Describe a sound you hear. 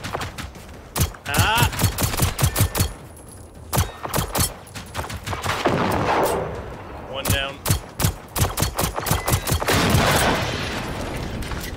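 A pistol fires a rapid string of loud, sharp shots.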